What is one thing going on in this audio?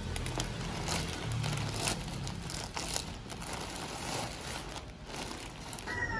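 A plastic bag crinkles and rustles as hands open it.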